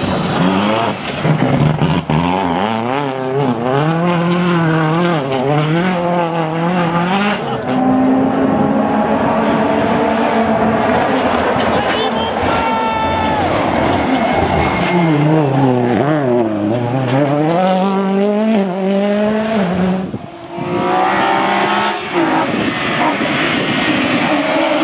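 A rally car engine revs hard, rising and falling as the gears change.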